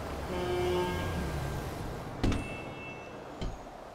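A glass door swings and knocks shut.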